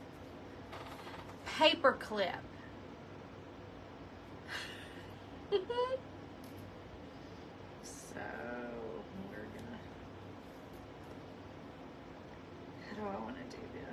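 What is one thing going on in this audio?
Paper rustles and crinkles in a woman's hands.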